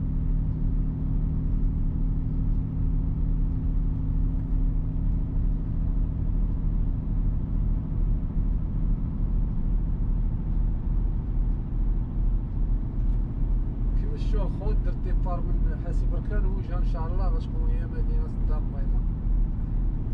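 A heavy vehicle's engine rumbles steadily from inside the cab.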